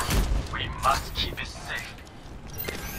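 A game weapon fires crackling energy bursts.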